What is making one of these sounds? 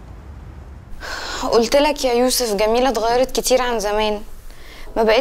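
A young woman speaks close by with feeling.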